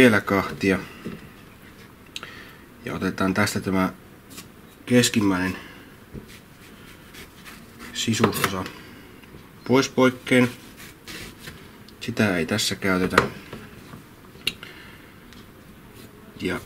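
A knife chops through a cucumber onto a wooden cutting board.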